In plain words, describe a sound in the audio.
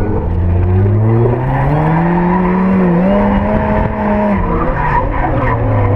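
Tyres squeal on the pavement as a car drifts.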